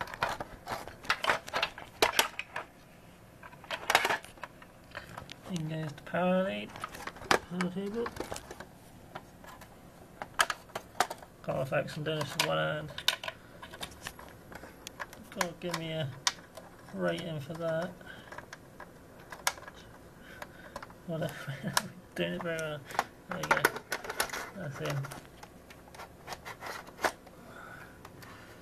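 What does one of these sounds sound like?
Thin metal parts click and rattle as they are handled.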